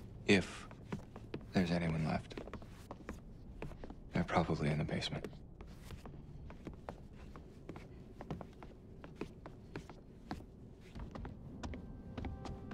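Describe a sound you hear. Footsteps thud on wooden stairs and floorboards.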